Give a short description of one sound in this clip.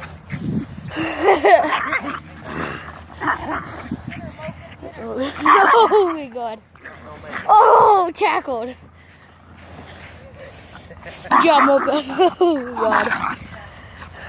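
Small dogs yelp and growl as they play close by.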